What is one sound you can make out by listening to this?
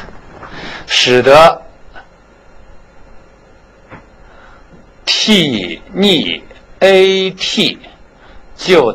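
A man speaks in short bursts.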